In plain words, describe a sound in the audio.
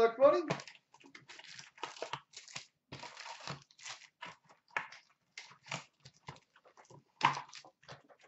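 Hands tear open a cardboard card box with rustling and crinkling.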